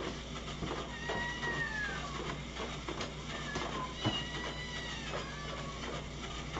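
Cats meow nearby.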